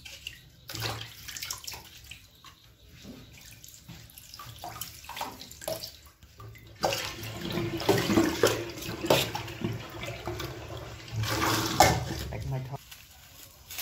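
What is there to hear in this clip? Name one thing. Hands rub and squelch wet fish in a sink.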